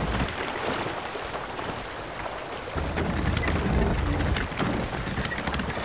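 Sea water splashes and rushes against a wooden ship's hull.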